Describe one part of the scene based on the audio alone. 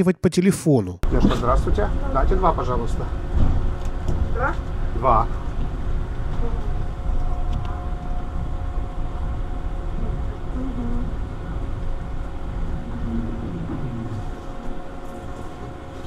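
A tram rumbles steadily along the tracks.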